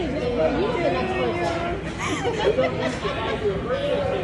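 A young girl laughs softly close by.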